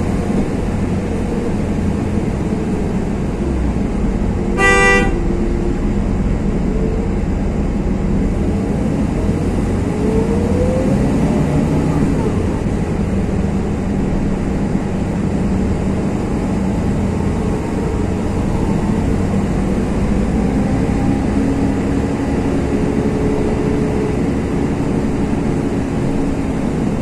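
An engine rumbles steadily.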